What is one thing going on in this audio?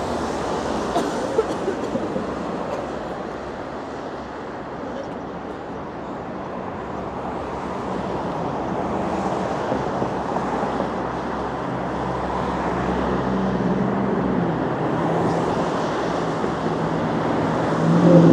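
Traffic rumbles steadily along a nearby street outdoors.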